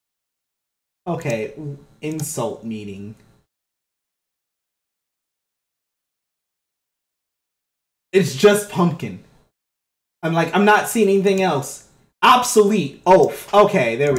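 A young man talks casually into a microphone, in bursts with pauses.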